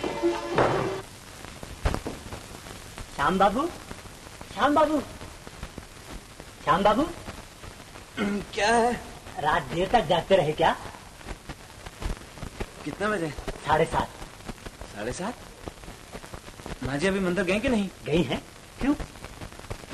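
A man speaks with animation, in short bursts.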